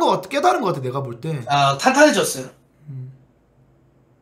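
A young man talks loudly and with animation through a microphone.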